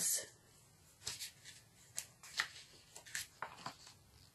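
Paper pages rustle softly.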